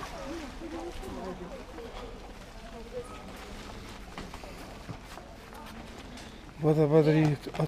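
A crowd of people chatters outdoors at a distance.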